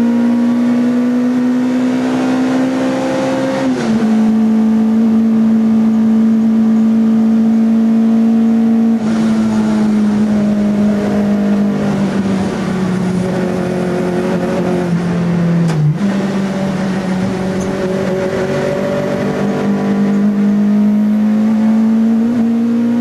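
A four-cylinder race car engine howls at full throttle, heard from inside the cabin.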